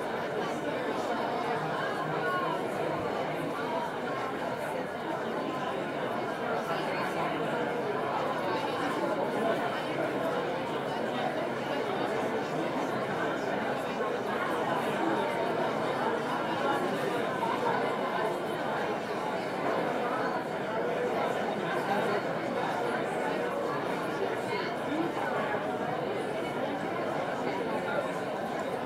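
A crowd of men and women chatter all around in a large echoing hall.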